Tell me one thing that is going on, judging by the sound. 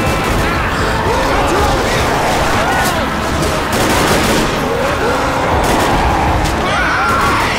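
Shotgun blasts boom in quick succession.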